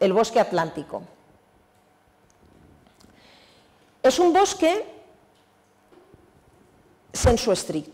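A woman lectures in a calm voice through a microphone, in short phrases with pauses.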